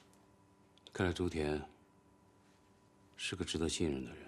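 A man speaks in a low, thoughtful voice, close by.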